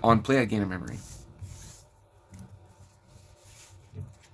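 Playing cards slide and rustle as a hand picks them up.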